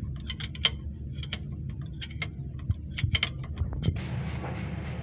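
Metal parts click and tap as a hand handles them.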